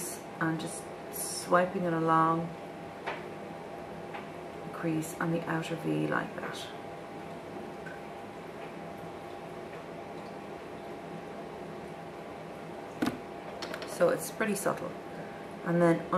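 A woman talks calmly close to a microphone.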